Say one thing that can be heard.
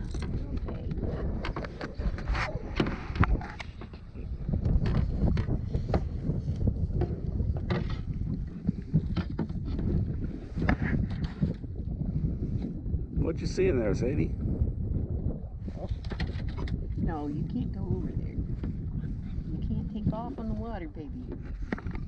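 Water laps and splashes against a kayak's hull.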